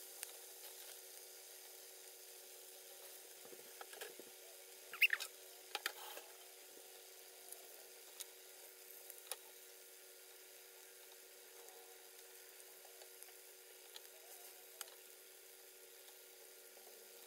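Patties sizzle and crackle in hot oil in a frying pan.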